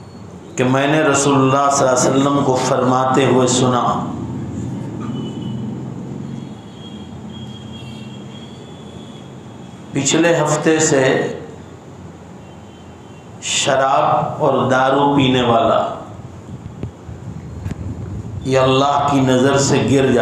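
An elderly man speaks calmly into a microphone, in bursts with pauses.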